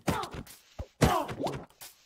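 A game character grunts as it takes a hit.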